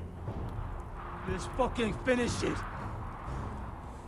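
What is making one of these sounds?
A young man shouts in pain and desperation.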